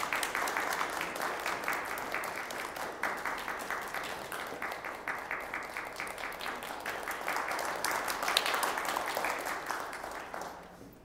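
An audience applauds steadily in an echoing room.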